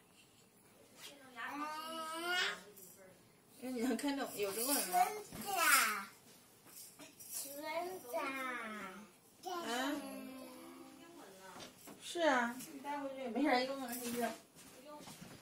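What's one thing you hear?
A toddler boy chatters in a high voice close by.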